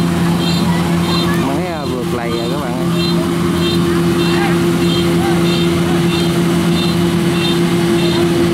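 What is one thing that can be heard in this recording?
A combine harvester engine drones steadily close by.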